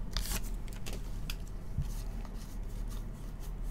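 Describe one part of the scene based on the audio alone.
Cards slide and flick against each other as they are shuffled.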